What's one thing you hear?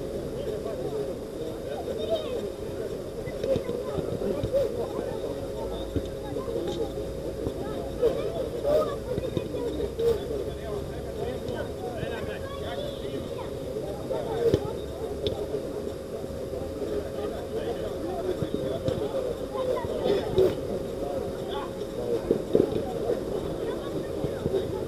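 Players shout and call out across an outdoor pitch.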